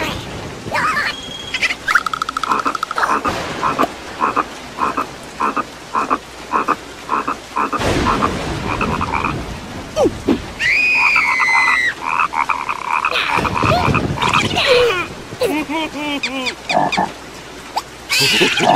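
A cartoon creature squeals and chatters in a high voice.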